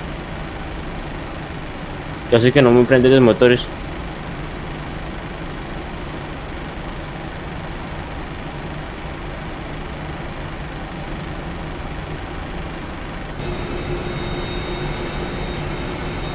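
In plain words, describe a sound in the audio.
Jet engines hum steadily at idle.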